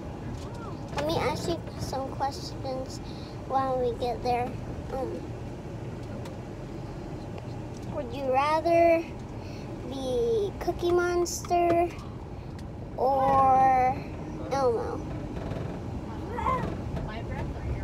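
A young boy talks close by, in short bursts with pauses.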